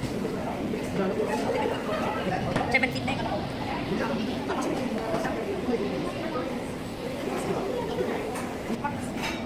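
A crowd of children and adults chatter in a large echoing room.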